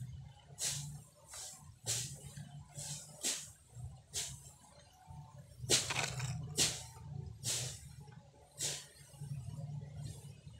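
Dry leaves rustle and crunch close by in short bursts.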